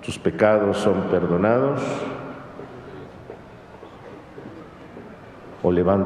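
A middle-aged man speaks slowly and solemnly into a microphone, in a reverberant hall.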